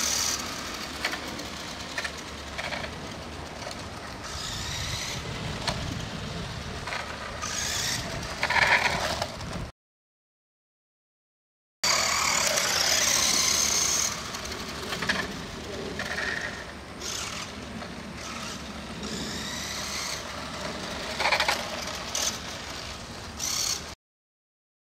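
A small toy car's electric motor whines as the car speeds along the road.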